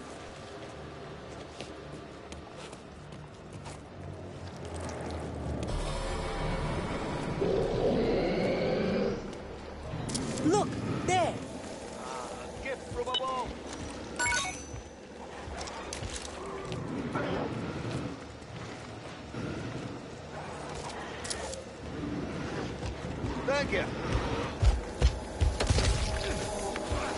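Footsteps scuff over stone floors.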